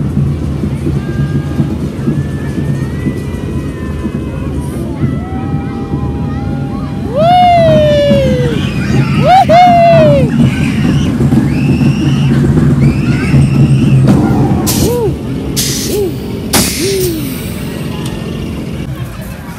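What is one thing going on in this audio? A fairground ride rumbles and whirs as it spins.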